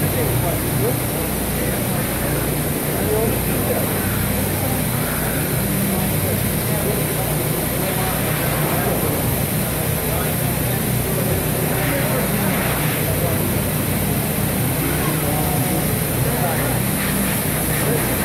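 Men and women chat quietly in the background of a large, open hall.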